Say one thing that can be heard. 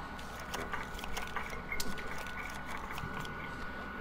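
Playing cards slide and flick onto a table.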